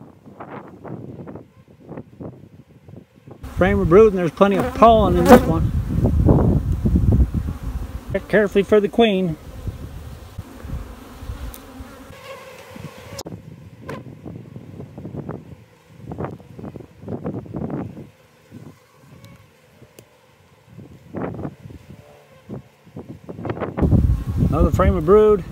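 Bees buzz steadily in a dense swarm.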